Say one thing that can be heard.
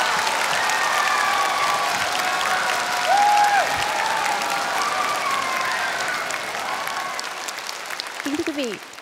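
A large crowd claps and cheers in a big hall.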